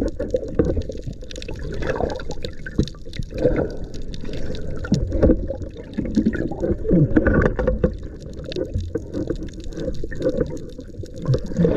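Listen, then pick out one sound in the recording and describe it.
Water rumbles and bubbles close by, heard muffled underwater.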